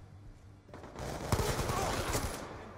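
A rifle fires a rapid burst of loud gunshots.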